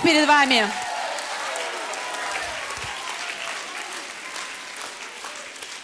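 A young woman speaks calmly through a microphone in a large echoing hall.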